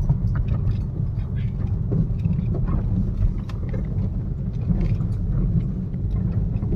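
Wind buffets a moving car with a low roar.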